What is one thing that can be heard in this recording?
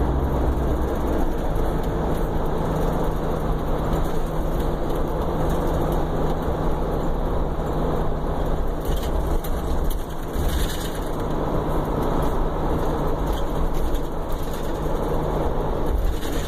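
A car engine rumbles steadily from inside a moving car.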